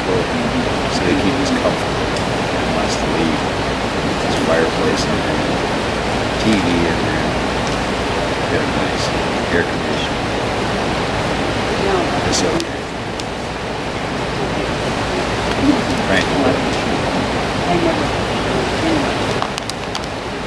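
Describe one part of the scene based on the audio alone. A middle-aged man talks calmly close to the microphone, outdoors.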